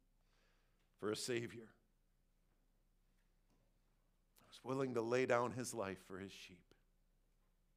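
A man speaks calmly in short phrases with pauses.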